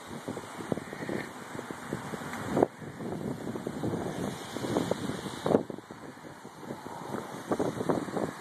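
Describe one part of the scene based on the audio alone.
Wind blows outdoors in gusts.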